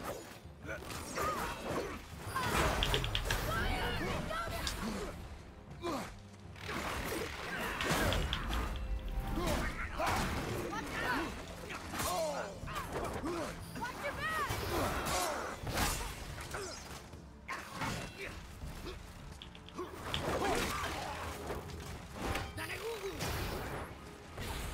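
Metal weapons clash and strike in a fierce fight.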